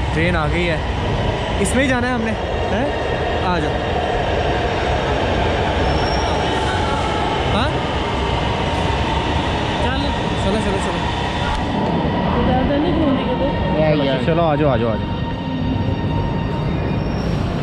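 A train's motors hum steadily in a large echoing hall.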